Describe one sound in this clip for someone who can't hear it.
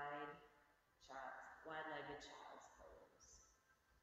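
A middle-aged woman speaks calmly in a room with a slight echo.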